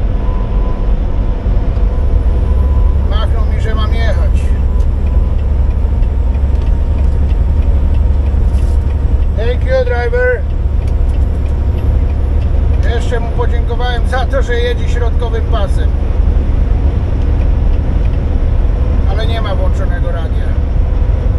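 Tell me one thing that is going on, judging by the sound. A truck engine drones steadily at highway speed.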